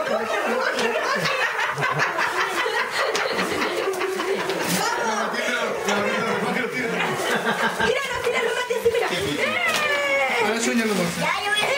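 Several young children shout and squeal excitedly close by.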